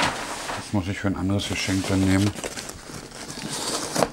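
A cardboard box scrapes and thuds as it is moved.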